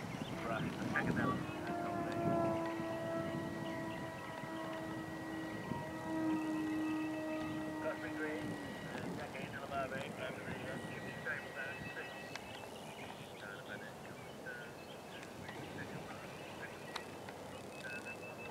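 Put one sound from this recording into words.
A horse gallops over grass at a distance, hooves thudding softly.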